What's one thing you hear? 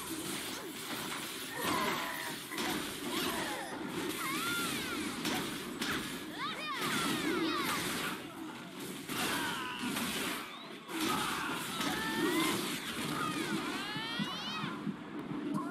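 Weapons clash and strike rapidly in a fight.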